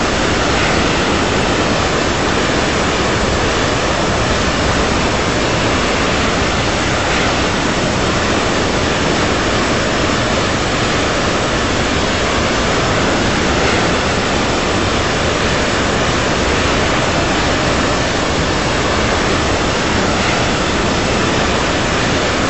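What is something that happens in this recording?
A jet airliner's engines roar steadily in flight.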